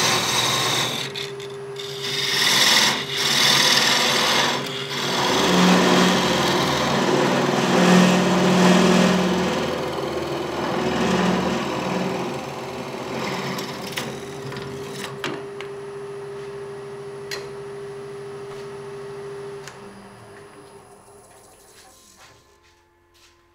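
A lathe motor hums steadily and then winds down.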